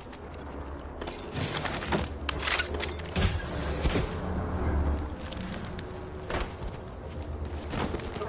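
Game footsteps and movement sounds play.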